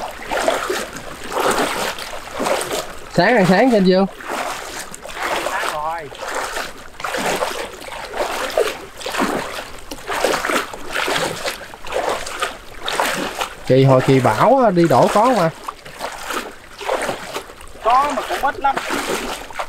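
Water splashes and sloshes in steady, repeated surges.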